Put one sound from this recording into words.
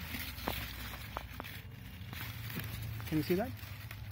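A root is pulled out of the soil.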